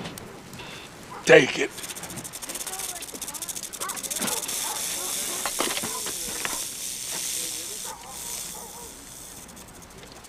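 A wicker basket scrapes and bumps against a car roof.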